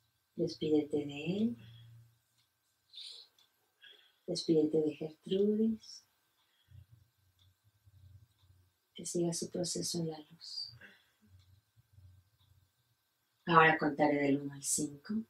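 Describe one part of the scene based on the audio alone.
A woman speaks calmly and close by, in short phrases with pauses.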